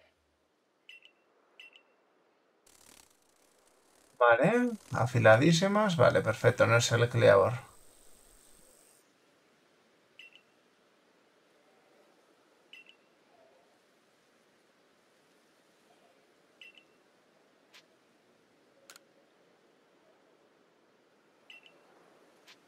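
Short soft blips sound now and then.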